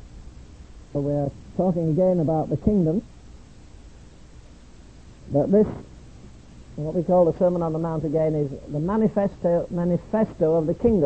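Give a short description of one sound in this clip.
An elderly man preaches with feeling through a microphone.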